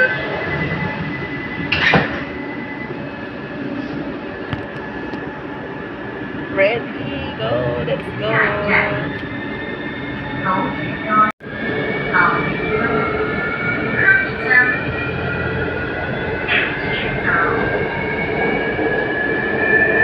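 A train hums and rumbles steadily.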